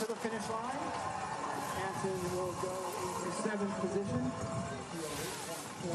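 A crowd cheers and shouts in the distance.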